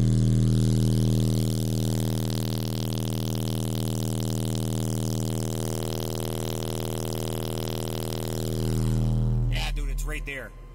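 A loud, low, steady bass tone hums from a speaker, then cuts off.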